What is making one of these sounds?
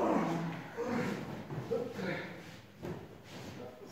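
A body thuds onto a padded mat.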